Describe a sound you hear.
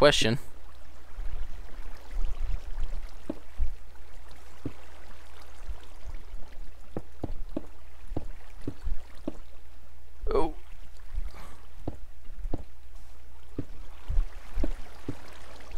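Stone blocks are placed one after another with short soft thuds.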